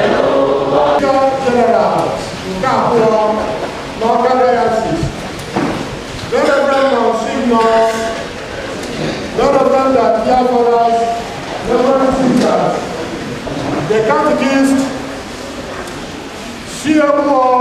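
A man speaks through a microphone and loudspeakers with a steady, preaching tone.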